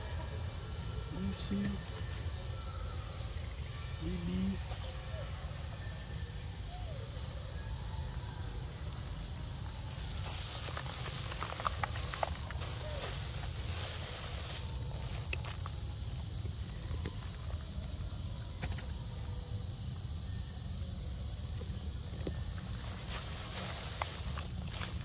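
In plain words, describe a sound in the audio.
Monkeys rustle through dry leaves on the ground.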